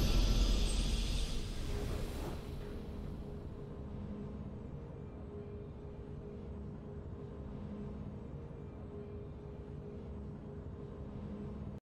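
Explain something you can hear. A game victory fanfare plays softly.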